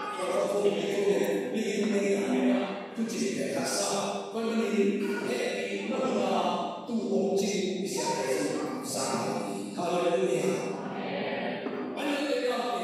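A middle-aged man speaks with animation through a microphone and loudspeakers in an echoing room.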